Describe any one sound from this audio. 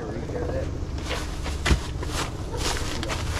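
Plastic bags rustle as they are handled.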